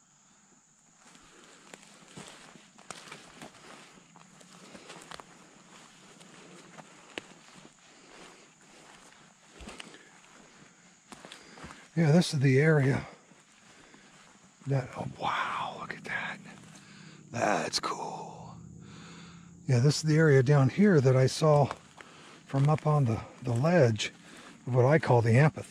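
Footsteps crunch through dry leaves on a forest floor.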